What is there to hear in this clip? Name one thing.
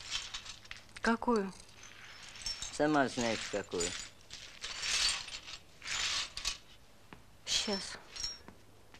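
An elderly woman speaks.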